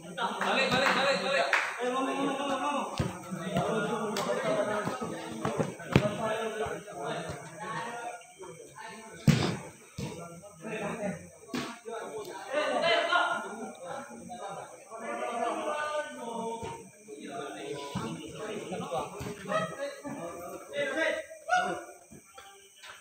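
Young men call out to each other during a game.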